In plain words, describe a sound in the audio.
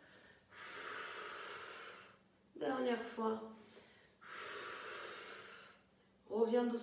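A woman exhales loudly and slowly.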